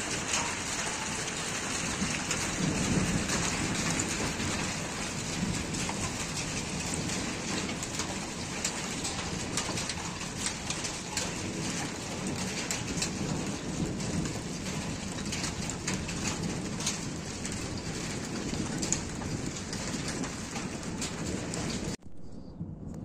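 Heavy rain pours down outdoors.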